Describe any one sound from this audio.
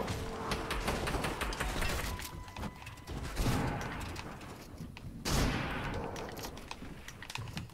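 Wooden walls clatter into place in quick succession.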